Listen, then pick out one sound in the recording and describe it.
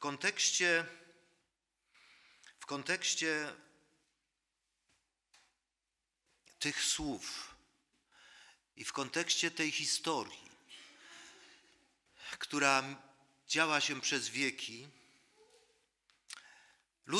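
An elderly man speaks steadily into a microphone with pauses, in a room with a slight echo.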